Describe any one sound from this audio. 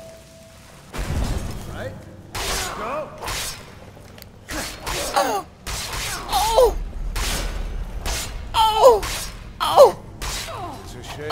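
A sword swings and strikes repeatedly.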